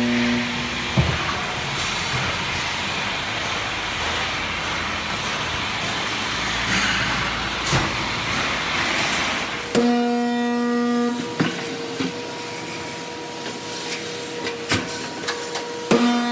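Metal clanks and thuds sharply now and then.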